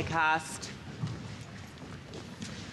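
A woman's heels tap on a stage.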